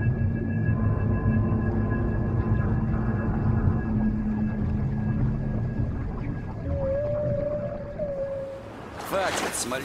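Water rumbles, heard muffled underwater.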